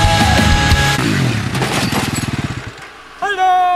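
A quad bike engine revs.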